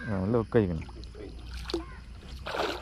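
A fish splashes in the water nearby.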